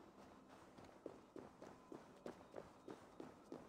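Quick footsteps run over the ground.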